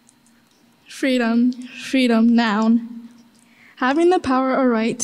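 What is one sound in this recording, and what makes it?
A young woman reads aloud calmly into a microphone, heard through loudspeakers.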